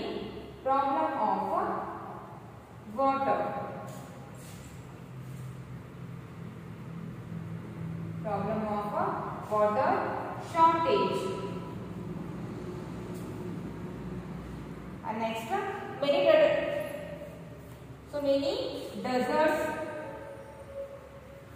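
A young woman speaks slowly and clearly, close by, as if reading aloud.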